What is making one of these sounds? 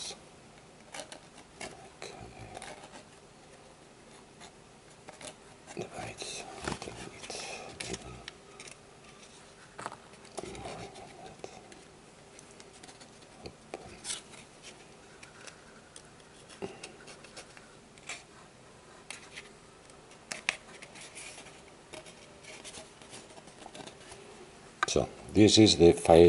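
Cord rubs and rustles against a cardboard tube as it is wound around it.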